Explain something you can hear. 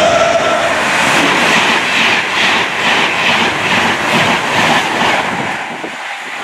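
Train wheels clatter rhythmically over rail joints.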